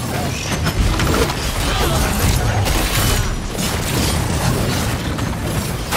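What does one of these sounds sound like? Weapons fire and blast in a fast game fight.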